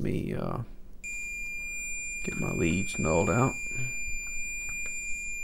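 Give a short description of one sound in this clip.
A multimeter gives a steady, high continuity beep.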